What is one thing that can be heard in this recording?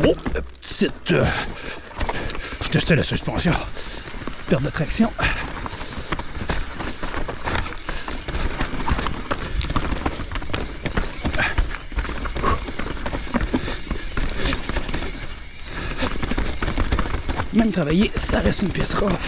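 Bicycle tyres rumble and crunch over a rocky dirt trail.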